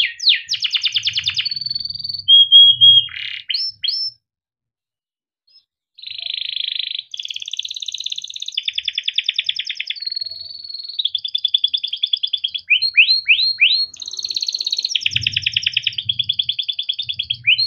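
A canary sings loud, rapid trills and whistles close by.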